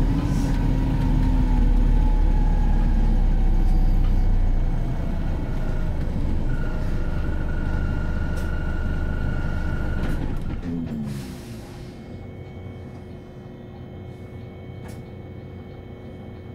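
A bus engine rumbles loudly from inside the bus, then quietens to an idle as the bus comes to a stop.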